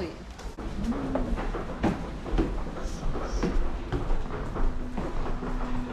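Footsteps thud on a wooden floor in an echoing hallway.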